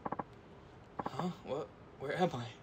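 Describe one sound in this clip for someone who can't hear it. A middle-aged man mutters in confusion, close by.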